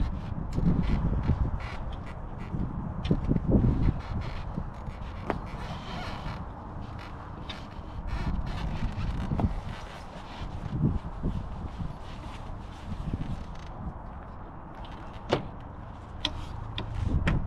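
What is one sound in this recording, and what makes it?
Tent fabric rustles and flaps as a man folds it.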